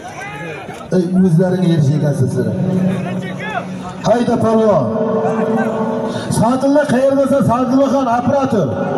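Men nearby shout loudly in long drawn-out calls.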